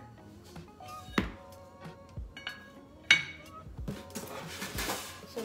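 Cardboard rustles and thumps as a box is handled.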